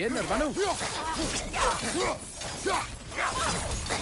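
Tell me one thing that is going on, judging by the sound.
Flames whoosh from a swung weapon.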